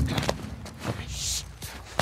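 A young woman whispers softly up close.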